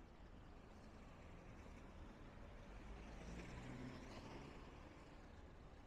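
A car drives past slowly on the street.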